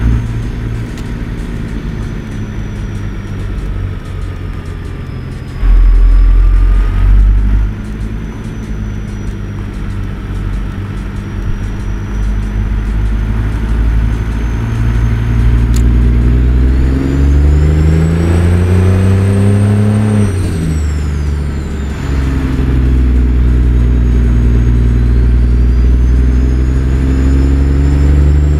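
A truck's diesel engine rumbles steadily, revving up through the gears and dropping as it shifts.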